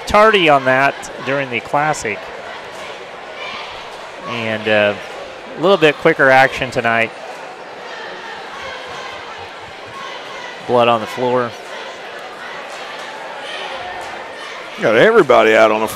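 A crowd murmurs softly in a large echoing gym.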